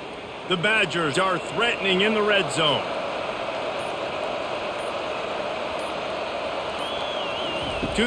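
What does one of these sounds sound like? A large crowd murmurs in a stadium.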